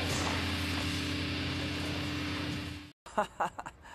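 A loud blast roars.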